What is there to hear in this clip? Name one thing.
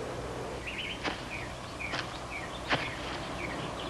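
Footsteps thud on wood outdoors.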